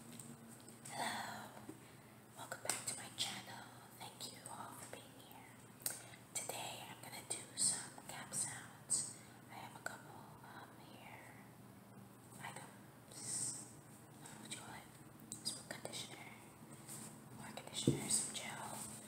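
A young woman speaks softly close to the microphone.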